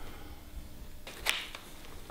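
Paper rustles and crinkles as hands smooth it.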